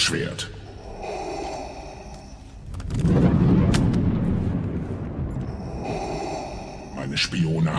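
A masked man breathes heavily and mechanically through a respirator.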